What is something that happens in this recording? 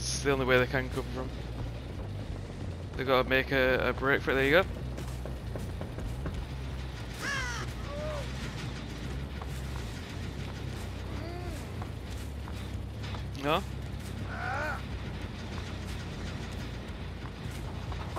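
A chainsaw idles with a low, steady rumble.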